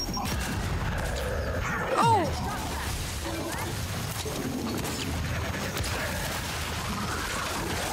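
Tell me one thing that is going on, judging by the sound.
Gunfire rattles in a game.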